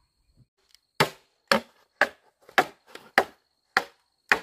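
A machete knocks against bamboo in sharp cracks.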